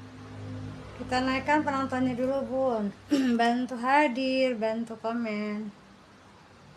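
A woman speaks close to a microphone with animation.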